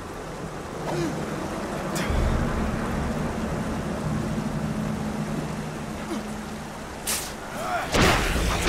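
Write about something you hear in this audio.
Water sprays and hisses from burst pipes.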